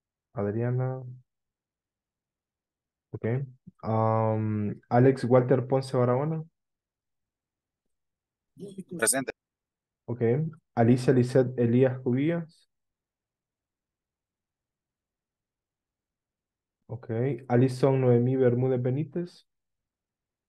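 A middle-aged man speaks calmly over an online call, in short bursts with pauses.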